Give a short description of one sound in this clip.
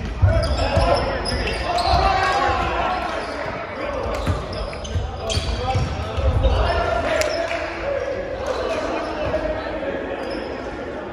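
Young men talk and call out to each other in a large echoing gym.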